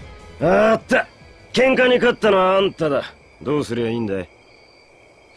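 A young man speaks casually.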